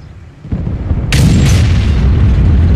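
A tank cannon fires with a loud, booming blast.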